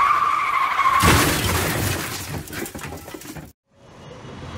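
A car crashes with a loud smash and clatter of debris.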